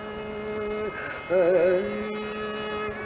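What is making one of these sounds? A man sings with a wavering voice.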